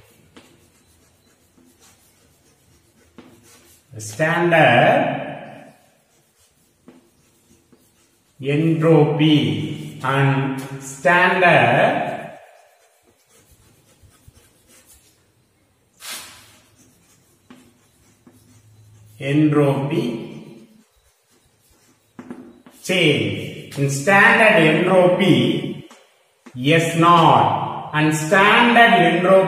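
Chalk scrapes and taps on a board.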